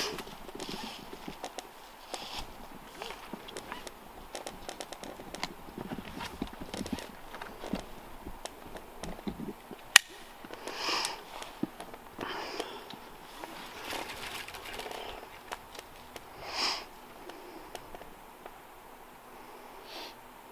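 Boots and gear scrape against tree bark.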